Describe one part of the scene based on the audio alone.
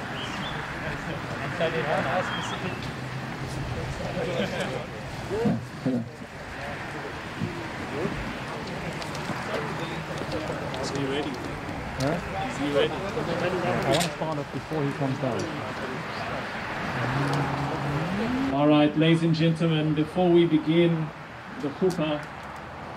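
Men talk quietly nearby outdoors.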